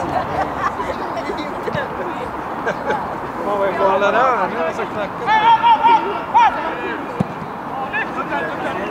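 Young men shout and call to each other outdoors on an open field.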